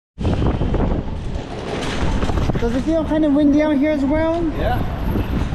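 Suitcase wheels rattle and rumble over concrete.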